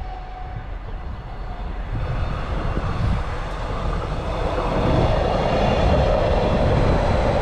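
A train approaches and rumbles past close by, growing louder.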